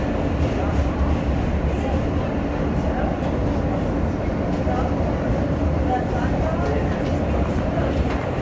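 A train rumbles loudly along elevated tracks.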